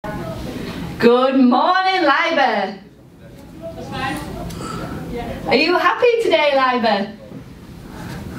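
A young girl sings in a high, clear voice, in two long phrases.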